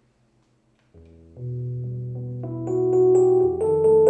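A keyboard plays sustained chords.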